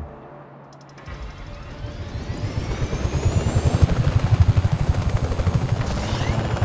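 A helicopter's rotor whirs and thumps as it starts up and lifts off.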